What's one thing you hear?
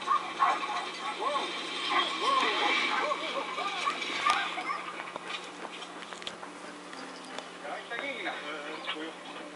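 A dog howls and yowls in wavering, rising and falling cries close by.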